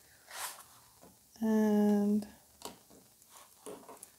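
A pen clicks lightly as it is picked up.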